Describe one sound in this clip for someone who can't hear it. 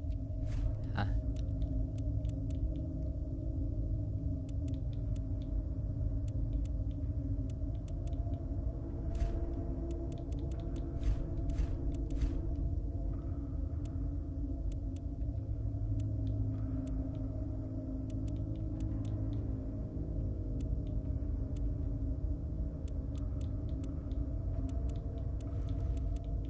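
Soft menu clicks tick now and then as selections change.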